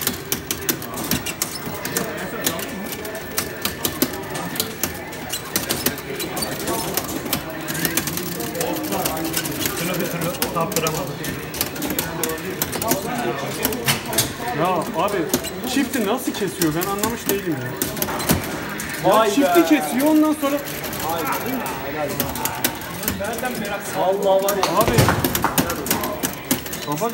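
A fighting game plays loud music and hit sounds from its speakers.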